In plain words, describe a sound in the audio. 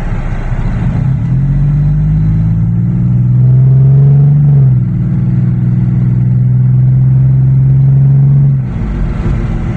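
A car engine revs hard, rising in pitch as the car accelerates.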